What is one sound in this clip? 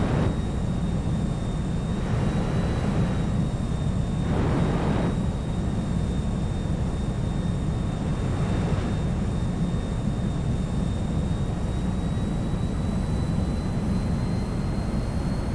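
A jet engine roars in flight.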